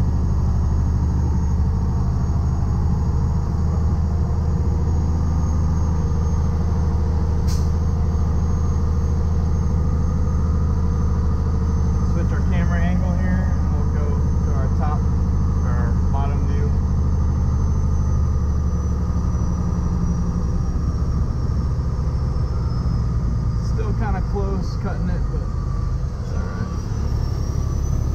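Tyres roll over the road.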